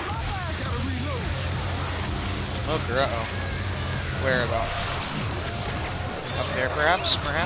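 Small cartoon creatures squeak in rising and falling cries.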